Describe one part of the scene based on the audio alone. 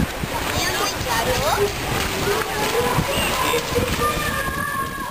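Young children shout and squeal nearby.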